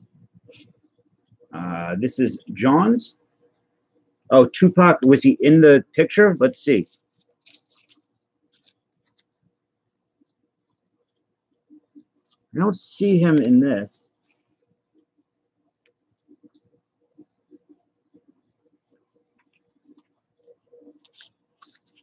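Stiff cards rustle and tap softly as a hand handles them.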